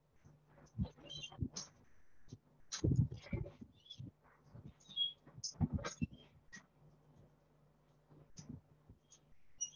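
A marker squeaks against a whiteboard.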